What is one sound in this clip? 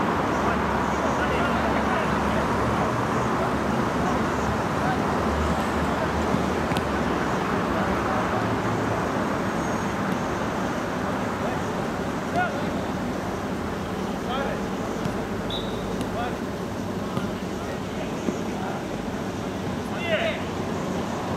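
Players shout to each other across an outdoor pitch.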